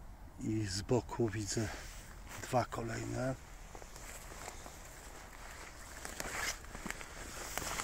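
Footsteps rustle and crunch through dry leaves and undergrowth.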